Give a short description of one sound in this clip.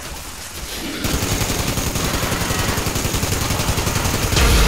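A rapid-fire gun fires a long, fast, rattling burst.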